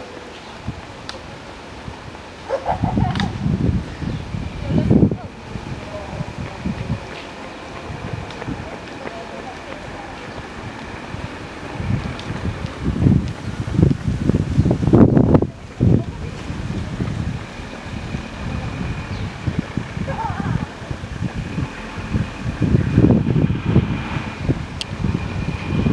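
Runners' shoes patter on the road as they pass.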